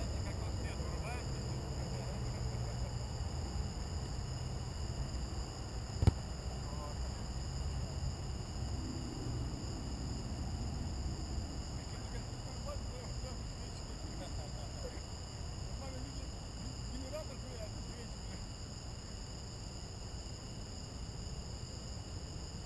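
Outdoors, a low steady rumble of wind buffets the microphone.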